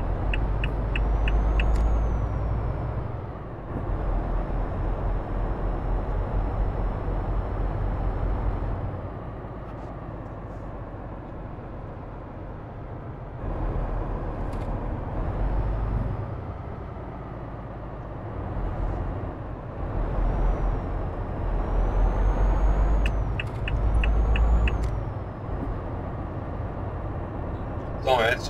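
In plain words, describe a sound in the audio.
A truck engine rumbles and drones steadily, rising and falling as the truck speeds up and slows.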